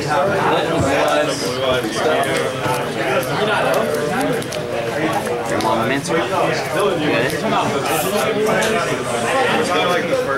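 Playing cards are dealt softly onto a table.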